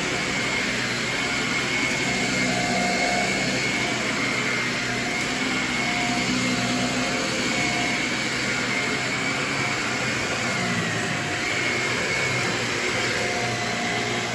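A vacuum cleaner head brushes back and forth over carpet.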